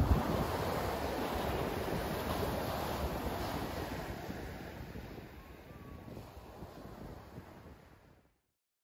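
Ocean waves break and wash onto the shore, slowly fading.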